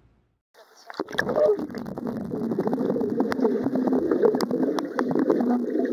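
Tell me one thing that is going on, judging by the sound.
Bubbles gurgle and rumble underwater as a woman breathes out.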